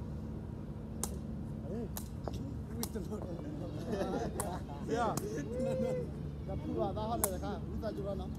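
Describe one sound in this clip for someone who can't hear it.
A volleyball is struck with a hand with sharp slaps.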